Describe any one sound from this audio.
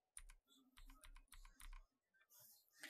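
Keys on a keyboard click in quick succession.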